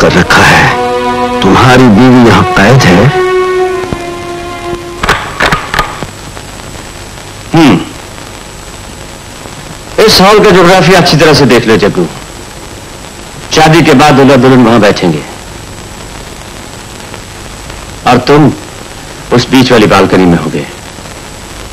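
A man talks with animation.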